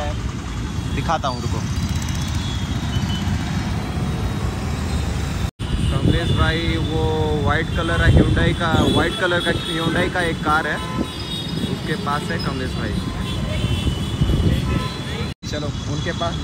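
Motor scooters and cars rumble past in busy traffic.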